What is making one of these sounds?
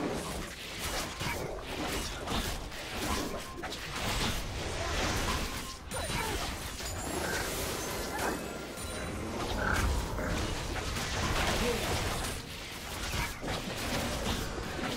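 Magic blasts and sword hits crackle and thump in a fast fight.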